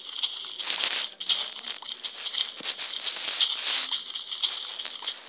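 Dry straw crunches in quick, repeated bursts as it is broken apart.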